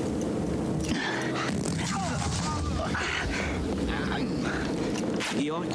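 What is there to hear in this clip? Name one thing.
A man cries out in strain close by.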